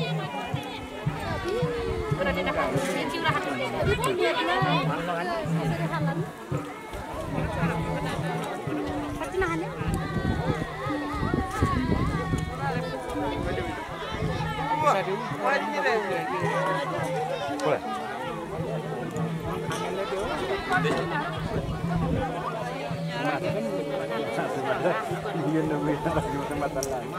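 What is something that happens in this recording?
A crowd of men and women chat and call out to each other outdoors.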